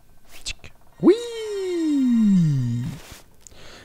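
A ghostly cat lets out a long, eerie yowl that slowly falls in pitch.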